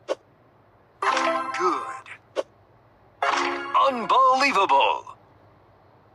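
A game plays bright, cheerful chime jingles as rows clear.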